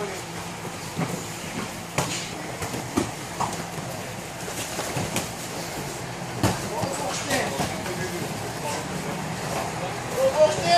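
Kicks and punches thud against pads in a large echoing room.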